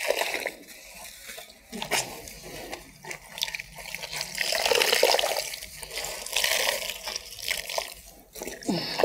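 Water splashes as clothes are wrung out over a basin.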